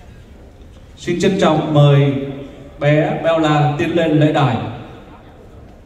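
A man sings loudly through loudspeakers in a large echoing hall.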